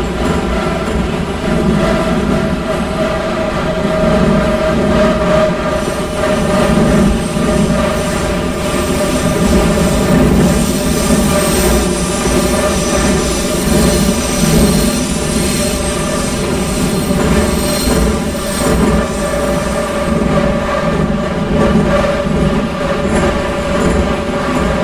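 A subway train rumbles steadily through a tunnel, with a whining motor hum.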